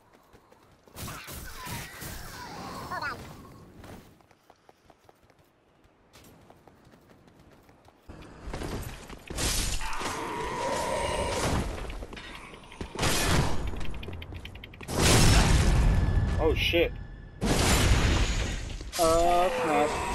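Swords slash and clang in a fierce fight.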